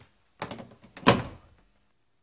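A phone receiver clacks into its cradle.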